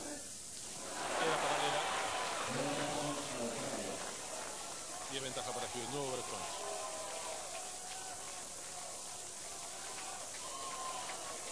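A large crowd cheers and applauds loudly in an open stadium.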